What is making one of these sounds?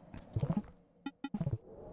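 A game menu opens with a soft electronic chime.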